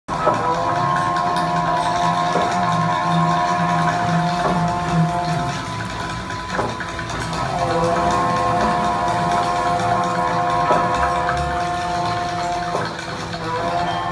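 A band plays loudly on a stage, heard through loudspeakers in an echoing room.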